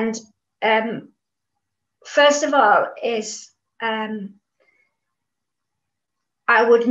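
An older woman speaks calmly and clearly, close to a microphone, with short pauses.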